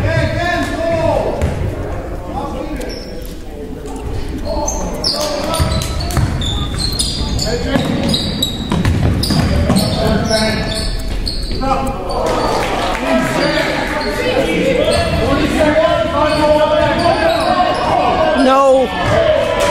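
Young players and spectators shout and call out in an echoing gym.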